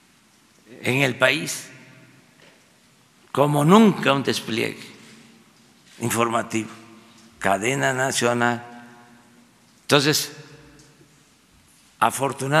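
An elderly man speaks calmly into a microphone in short bursts, with pauses between phrases.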